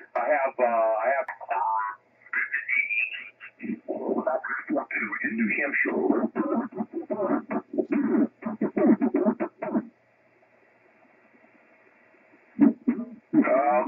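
Voices talk through a radio loudspeaker, thin and muffled.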